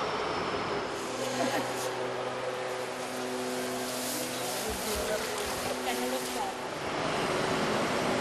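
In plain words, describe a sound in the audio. A pitchfork rustles through loose hay.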